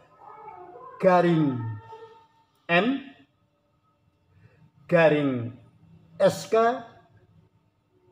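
An elderly man speaks calmly and close to the microphone.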